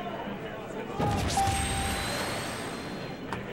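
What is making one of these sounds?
A game console menu plays a short startup chime.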